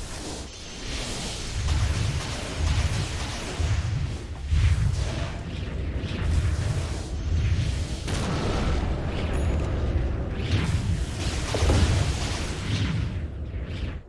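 Weapons clash and strike in a video game fight.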